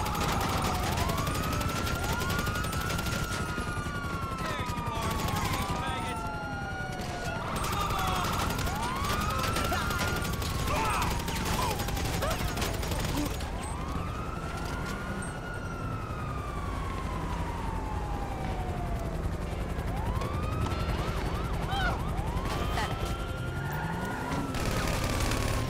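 Police sirens wail nearby, rising and falling over and over.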